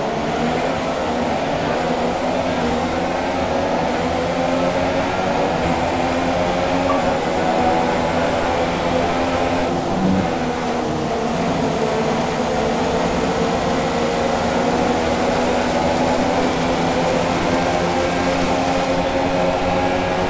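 A racing car engine roars at high revs, rising and dropping through gear changes.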